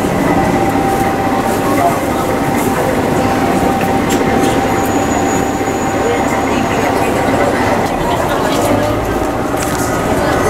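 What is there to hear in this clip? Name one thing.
A large crowd chatters and cheers loudly nearby.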